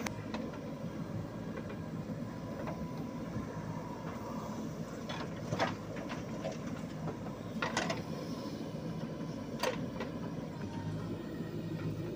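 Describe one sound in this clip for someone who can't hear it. A steel bucket scrapes into dry earth.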